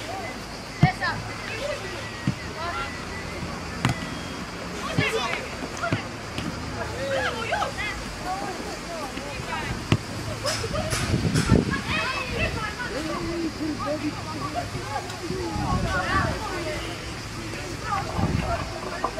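Young boys shout and call out across an open outdoor pitch.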